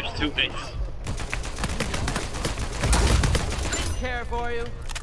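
Rapid rifle gunfire rattles in bursts.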